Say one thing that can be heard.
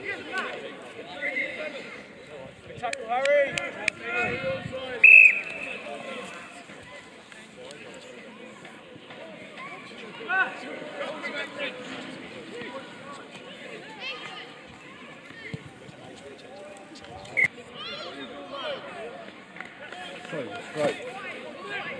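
Teenage boys shout and call to each other across an open field.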